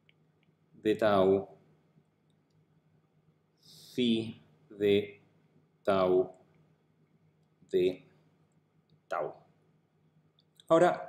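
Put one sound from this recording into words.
A man speaks calmly and slowly into a close microphone, in short phrases with pauses.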